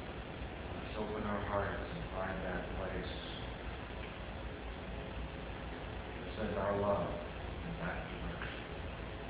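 A man speaks calmly at a distance in an echoing room, pausing between phrases.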